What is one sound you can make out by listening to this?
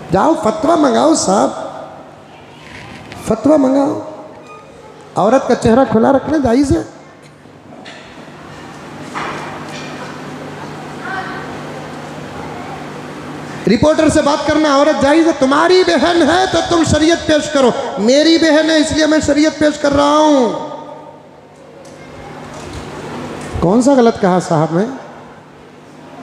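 An elderly man preaches with animation into a microphone, his voice rising and falling in bursts.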